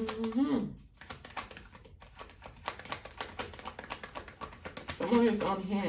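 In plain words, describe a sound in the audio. Playing cards flick and slap rapidly as a deck is shuffled by hand.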